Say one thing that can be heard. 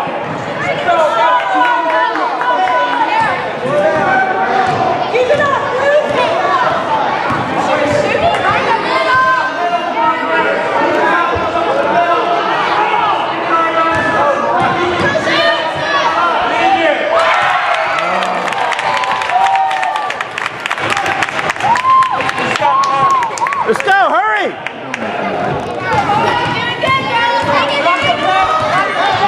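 Girls shout and call out across a large echoing gym.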